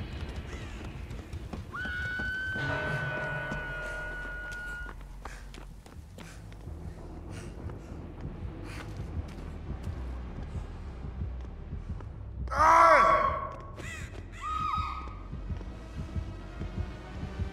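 Footsteps thud on metal stairs and a hard floor.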